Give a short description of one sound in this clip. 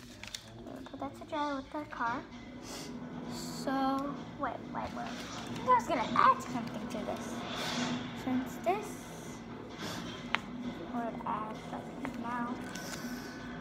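A young girl talks nearby.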